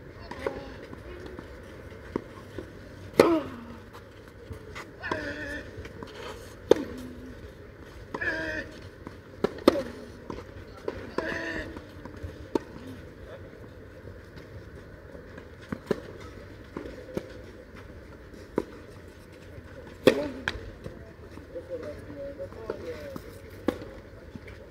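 Tennis balls are struck with rackets, thudding back and forth outdoors.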